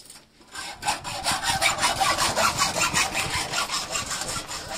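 A hammer strikes metal on a stone, ringing sharply.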